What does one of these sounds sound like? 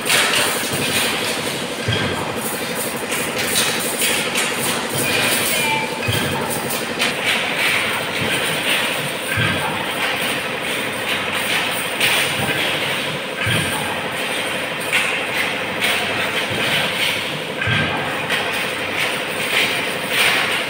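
Metal wire mesh rattles and clinks as it is handled.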